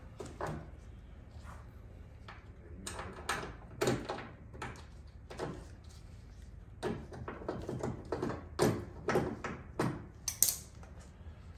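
Small tools and parts click and tap against a car door.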